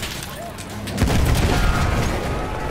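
A shell explodes with a deep, heavy boom close by.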